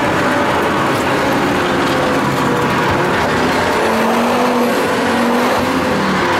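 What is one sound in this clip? Tyres hum and rumble on the road surface.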